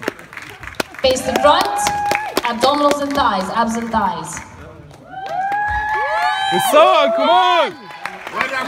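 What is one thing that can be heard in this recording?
A crowd in a large hall cheers and whoops loudly.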